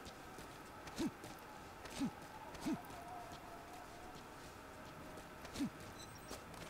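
Heavy footsteps thud on the ground at a run.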